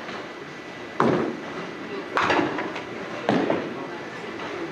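Bowling pins crash and clatter in an echoing hall.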